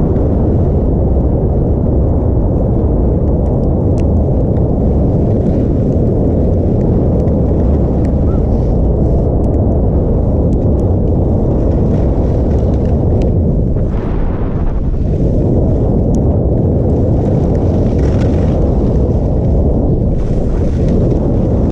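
Skis hiss and scrape over snow.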